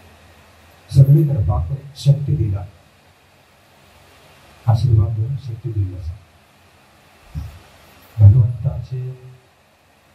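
A man speaks calmly and slowly into a microphone, close by.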